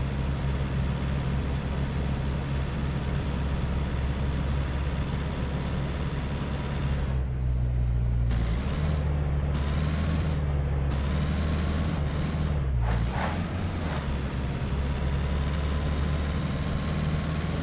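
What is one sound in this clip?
A car engine drones steadily at speed.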